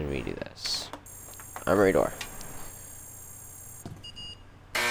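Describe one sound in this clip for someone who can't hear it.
A computer emits a steady electronic tone while processing.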